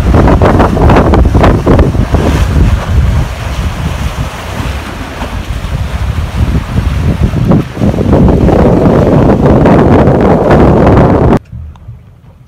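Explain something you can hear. Waves break and splash against a steel wreck and rocks.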